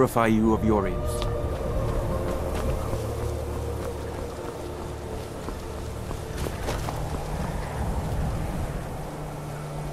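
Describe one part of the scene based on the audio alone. Footsteps crunch on gravel and snow.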